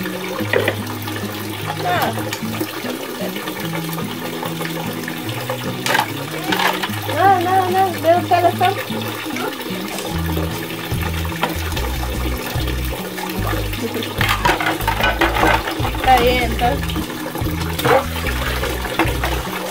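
Dishes clink and scrape as they are washed by hand.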